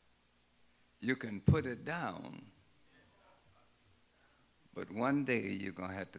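An elderly man preaches through a microphone in bursts with pauses.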